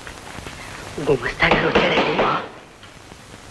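A man speaks with agitation, close by.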